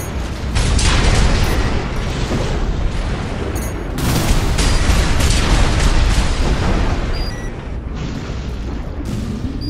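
Heavy thrusters roar.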